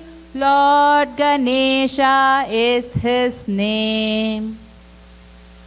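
A woman sings a melody loudly through a microphone.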